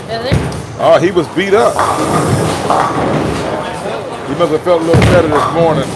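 A bowling ball rolls down a lane with a low rumble.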